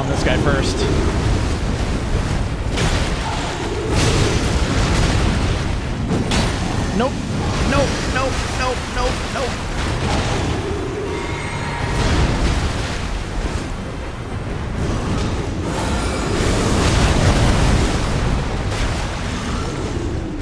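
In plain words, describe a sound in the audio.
Heavy blows, clashing weapons and monstrous roars boom loudly.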